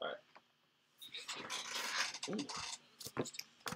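Paper pages rustle as they are flipped.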